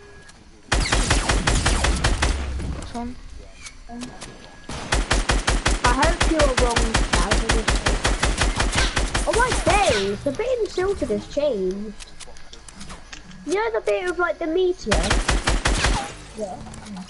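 A gun fires in rapid, loud bursts.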